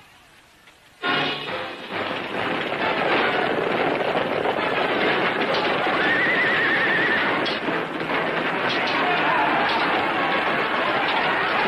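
A crowd of men shout in battle.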